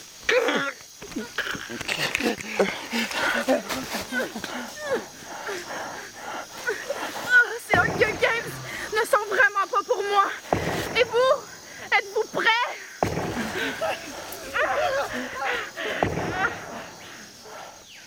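A young person talks with animation close by.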